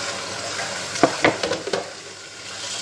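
A ceramic plate clatters as it is set down on a counter.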